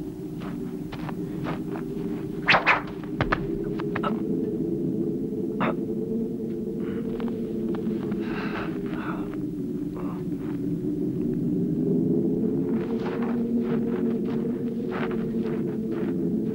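Arrows strike a man's body with sharp thuds, one after another.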